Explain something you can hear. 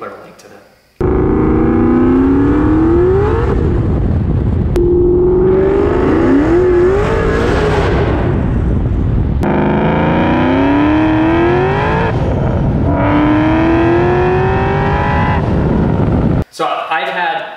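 A car engine roars loudly, climbing in pitch as it speeds up through several gears.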